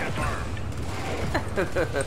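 Heavy gunfire blasts in rapid bursts.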